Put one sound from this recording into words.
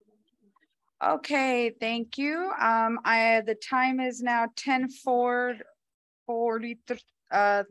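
A woman speaks loudly and clearly through a microphone.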